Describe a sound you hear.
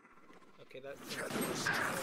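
A shimmering magical whoosh rises as a power is cast.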